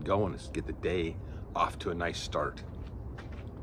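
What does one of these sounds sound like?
A middle-aged man talks with animation, close by.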